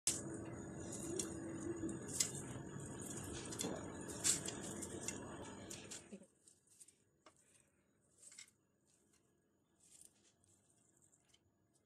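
Crisp fried pieces crackle as fingers crumble them.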